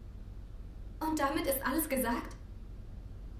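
A young woman answers quietly, close by.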